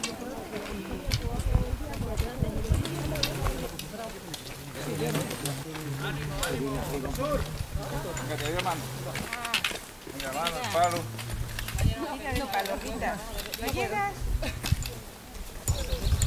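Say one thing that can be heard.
Men and women in a group of hikers chat with animation outdoors.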